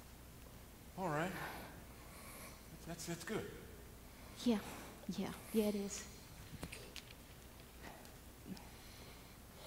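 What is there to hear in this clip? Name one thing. An elderly woman speaks loudly and with animation, heard from a distance in a large room.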